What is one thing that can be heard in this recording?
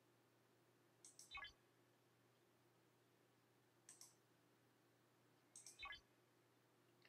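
Short electronic chimes sound as a game menu changes.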